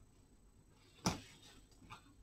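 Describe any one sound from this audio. A brush clatters down onto a hard surface.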